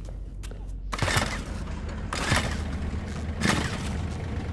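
A generator's pull cord is yanked several times.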